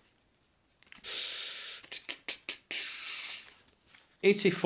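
A card rustles and scrapes in a man's hands.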